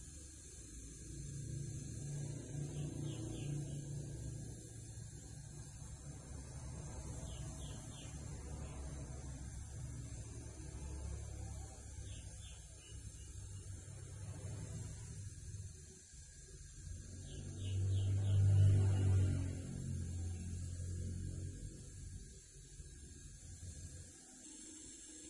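A gas torch roars steadily.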